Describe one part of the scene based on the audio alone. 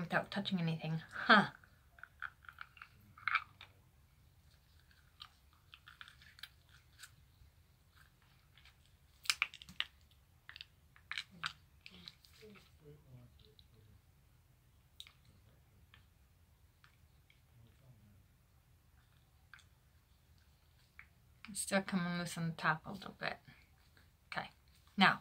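Small clicks and mouth sounds come from something being handled at a woman's mouth.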